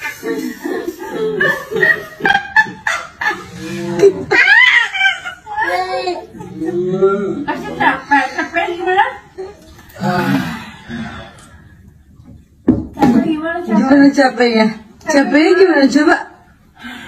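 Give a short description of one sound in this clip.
A baby laughs loudly and squeals close by.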